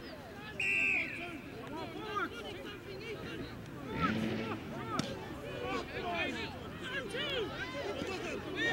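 Spectators cheer and shout from the sideline.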